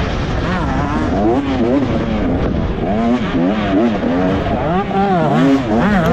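A dirt bike engine revs hard up and down close by.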